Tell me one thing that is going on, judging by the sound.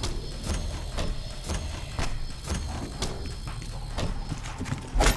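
A gun fires in quick, regular shots.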